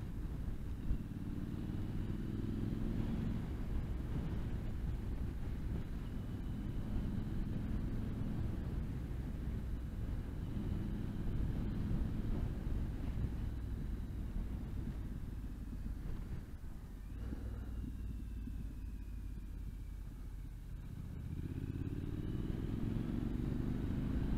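A motorcycle engine rumbles steadily and rises and falls in pitch as the rider accelerates and slows.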